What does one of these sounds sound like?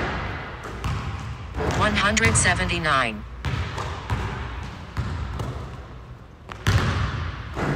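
A basketball bounces and thuds on a hardwood floor in a large echoing gym.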